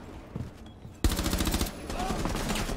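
An explosion blasts through a wall with a loud boom.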